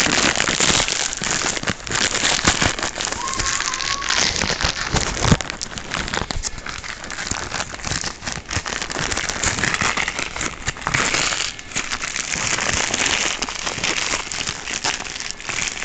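Fabric rustles and scrapes right up close.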